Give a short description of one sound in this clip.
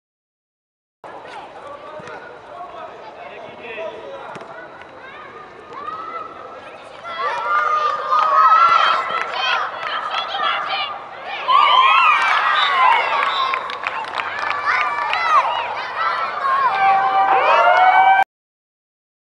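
Children shout excitedly in a large echoing hall.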